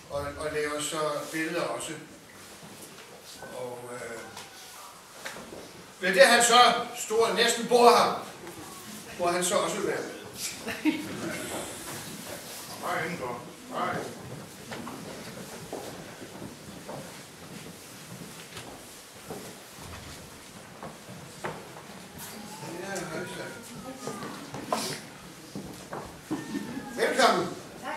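An elderly man speaks with feeling, close by.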